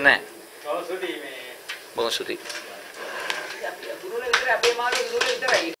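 A middle-aged man speaks calmly into a microphone in a room with a slight echo.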